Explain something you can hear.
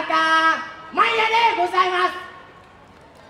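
A man speaks through a loudspeaker outdoors.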